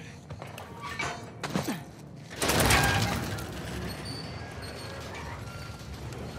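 A metal gate rattles and clanks as it is pushed open.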